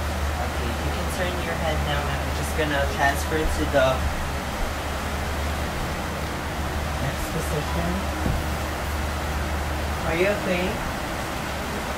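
A young man speaks briefly in a calm voice close by.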